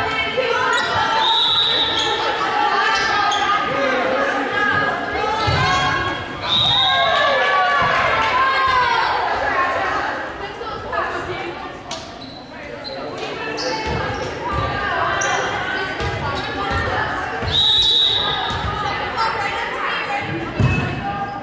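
Young women shout and call out across a large echoing gym.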